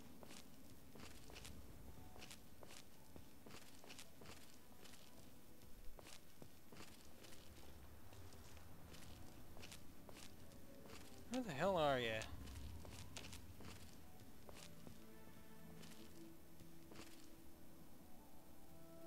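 Footsteps crunch steadily over gravel and rubble.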